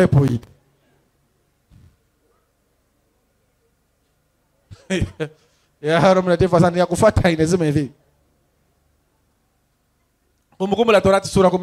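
A man speaks into a microphone in short bursts, with long pauses.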